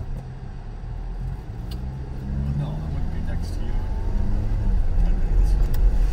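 A car engine revs up and grows louder as the car pulls away.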